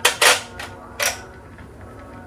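Glass jars clink against a metal rack.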